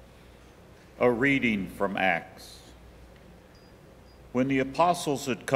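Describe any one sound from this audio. A man reads aloud into a microphone in a large echoing hall.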